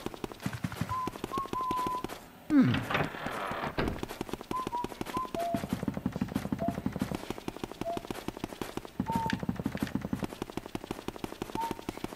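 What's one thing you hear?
Quick footsteps tap steadily on a wooden floor.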